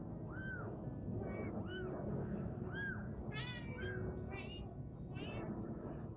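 Small kittens mew in high, repeated cries.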